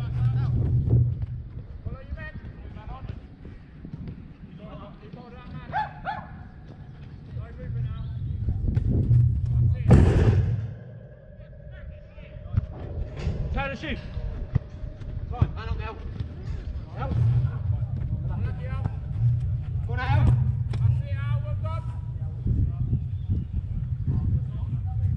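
Men shout to each other during a football game outdoors.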